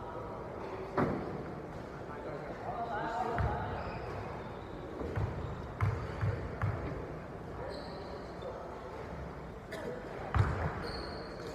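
A basketball thuds on a wooden floor in a large echoing hall.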